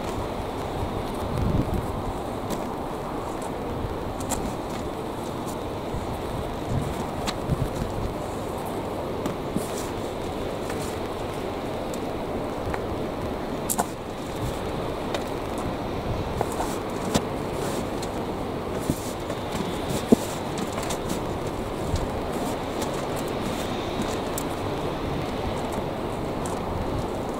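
Gloved hands rustle and crumble through compost in a metal wheelbarrow.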